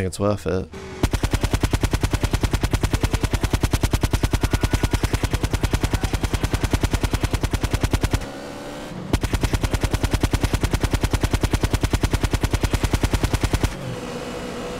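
Rapid machine-pistol gunfire rattles in long bursts.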